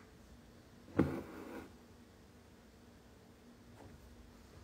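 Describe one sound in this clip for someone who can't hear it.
Fingers handle and rustle a cloth stretched in an embroidery hoop.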